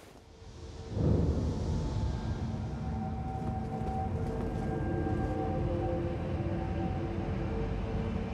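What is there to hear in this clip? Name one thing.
Footsteps tread on stone paving.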